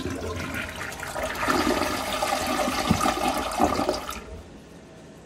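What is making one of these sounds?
A toilet flushes with water rushing and swirling in the bowl.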